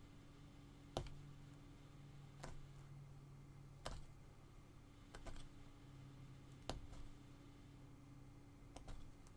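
A punch needle pokes through taut fabric with soft, sharp thuds.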